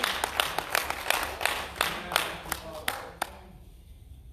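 Footsteps thud across a floor in a large room.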